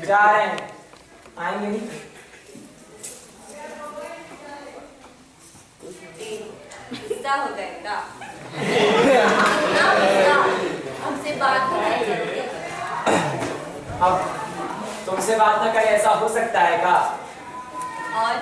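A woman speaks with feeling in a large echoing hall.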